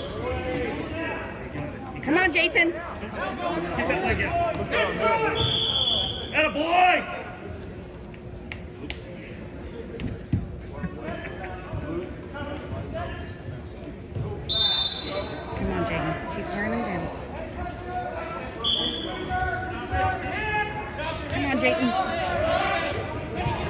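Men shout loudly in an echoing gym.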